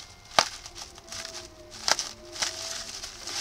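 Bubble wrap pops with sharp snaps.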